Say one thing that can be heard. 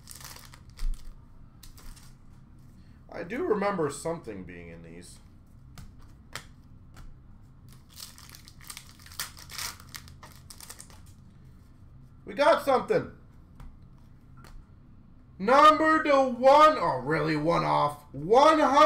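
Trading cards rustle and tap as they are handled.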